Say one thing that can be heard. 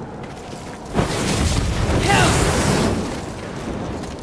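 Flames burst up with a loud roaring whoosh.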